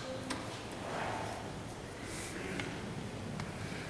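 An older man reads aloud in a steady chant.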